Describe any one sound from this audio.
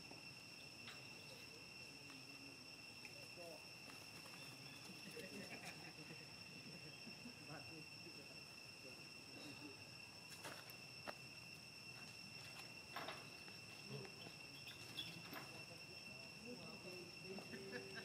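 Young monkeys squeak and chatter softly.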